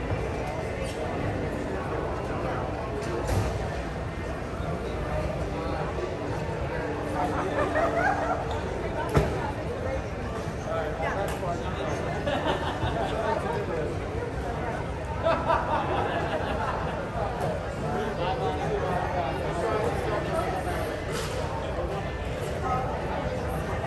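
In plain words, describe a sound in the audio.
Footsteps and rolling suitcases clatter across a hard floor.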